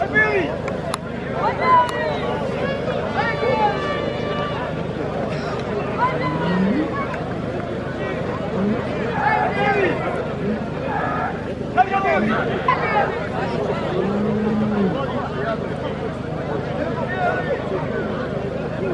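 Two bulls knock their heads together with dull thuds.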